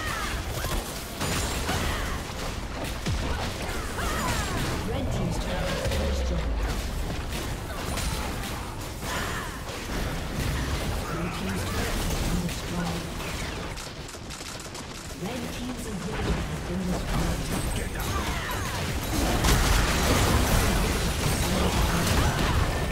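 Game spell effects crackle and burst rapidly.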